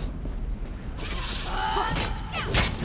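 Large wings buzz loudly close by.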